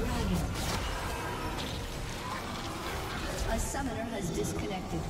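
Game spell effects crackle and whoosh in quick bursts.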